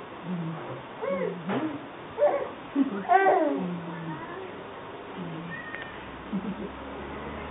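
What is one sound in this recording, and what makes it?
A baby coos and squeals.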